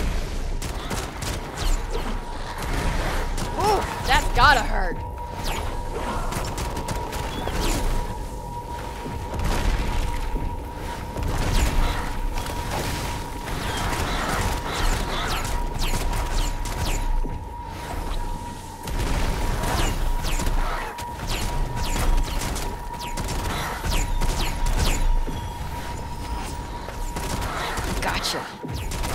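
Magic spells crackle and burst in quick blasts.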